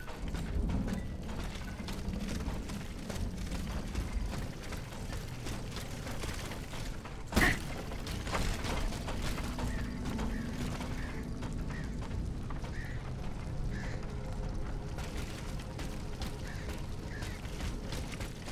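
Footsteps run quickly over wet ground.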